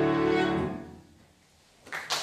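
A violin plays a final note that fades away.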